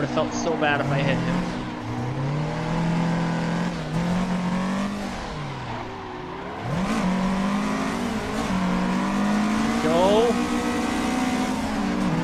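A car engine revs up and down hard throughout.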